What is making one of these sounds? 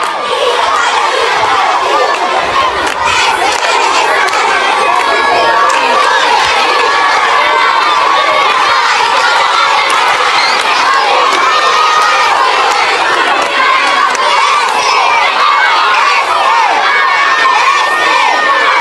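A crowd of young children chants loudly together outdoors.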